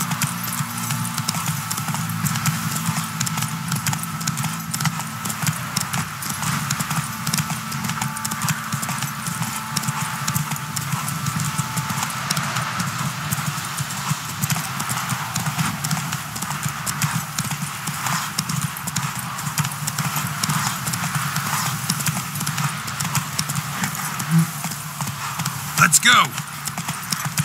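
A horse gallops steadily over a dirt path.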